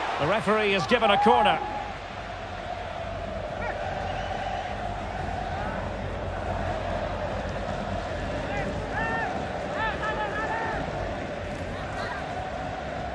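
A large crowd cheers and chants steadily in a stadium.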